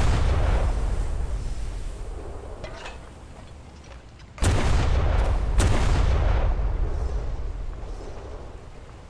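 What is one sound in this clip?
Heavy naval guns fire with deep booming blasts.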